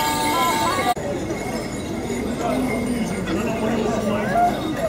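Men and women chat casually nearby outdoors.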